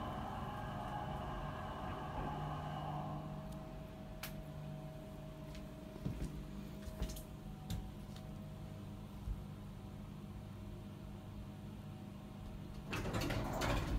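A hydraulic elevator car hums as it travels.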